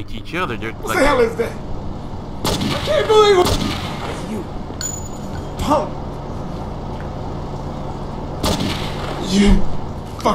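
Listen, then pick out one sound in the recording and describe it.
Pistol shots ring out sharply, one at a time.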